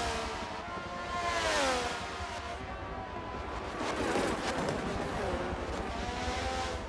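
Racing car engines scream at high revs, rising and falling in pitch as they pass.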